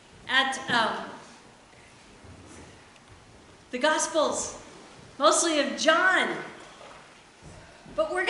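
A woman speaks with animation in a reverberant hall, in short bursts with pauses.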